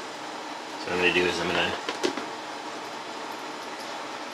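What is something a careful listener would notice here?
A plastic lid snaps and rattles onto a plastic container.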